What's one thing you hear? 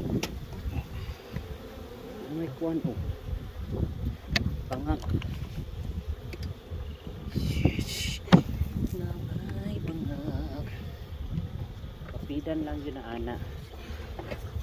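Bees buzz loudly and steadily close by.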